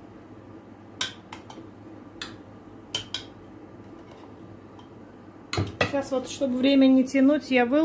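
A spoon clinks against a glass jar.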